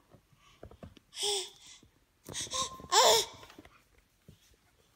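A baby laughs.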